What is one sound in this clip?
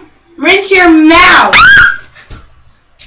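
A young girl squeals loudly with a high voice.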